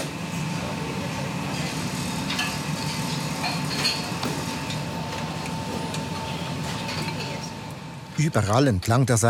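Bowls and utensils clatter in a busy kitchen.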